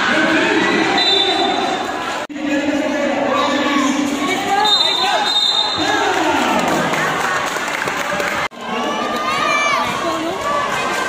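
Sneakers squeak sharply on a court floor.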